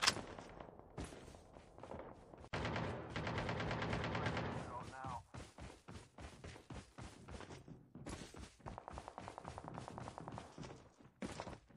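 Quick footsteps run over ground.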